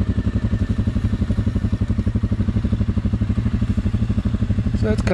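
An off-road quad bike engine idles with a steady, fast chugging throb.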